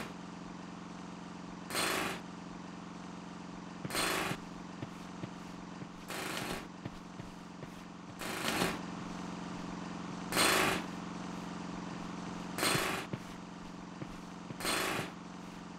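Footsteps fall on stone paving.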